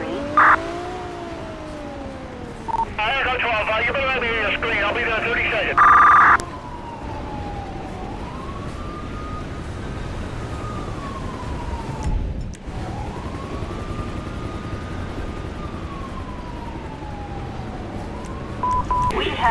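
A police siren wails up and down nearby.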